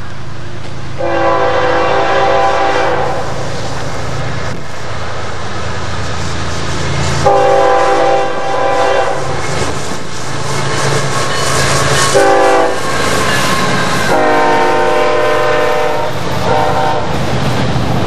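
A diesel freight locomotive sounds its air horn in long blasts.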